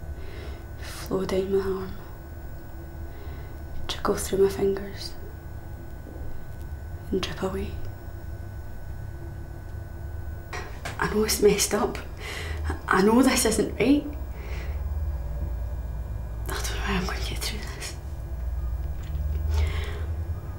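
A young woman sings softly and close by.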